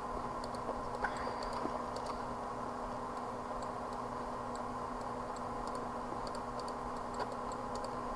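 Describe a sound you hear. Soft game clicks sound as items are moved in a menu.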